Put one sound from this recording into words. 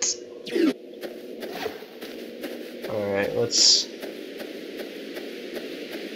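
Soft game footsteps tap at a steady pace.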